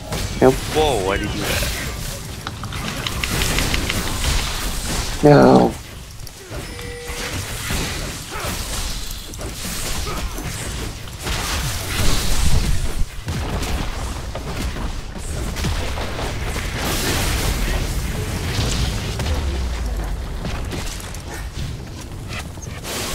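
Game spell effects whoosh and blast in quick bursts.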